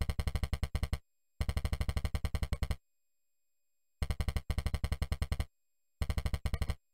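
Rapid electronic beeps tick out in quick bursts as text prints letter by letter.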